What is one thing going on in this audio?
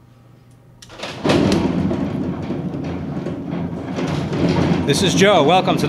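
Plastic balls rattle and tumble loudly inside a spinning drum.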